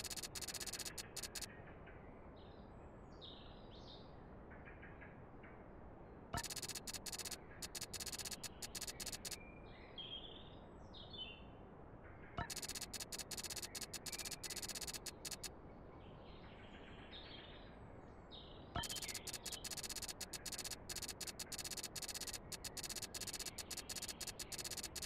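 Rapid electronic blips tick in quick bursts.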